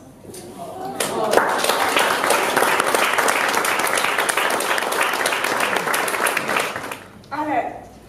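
A crowd of guests claps and cheers.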